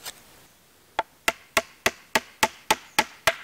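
A hammer taps steadily on wood.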